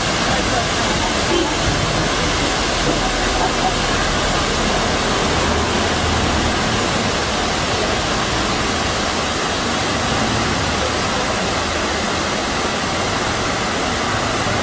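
A waterfall rushes and splashes steadily over rocks.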